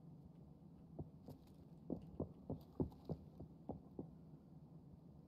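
Footsteps thud on a hard floor indoors.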